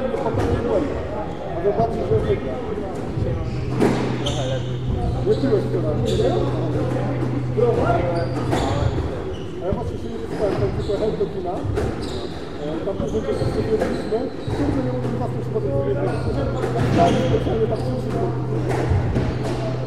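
A squash ball smacks off a racket and the walls in a quick rally.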